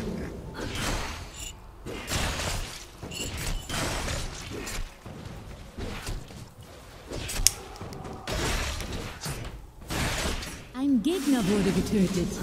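Game spells crackle and weapons clash in a fight.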